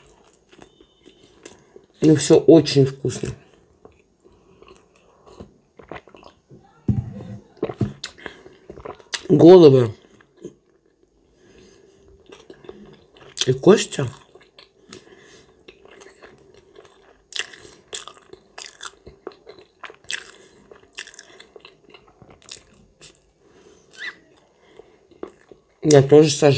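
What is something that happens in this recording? A middle-aged woman chews food with smacking sounds.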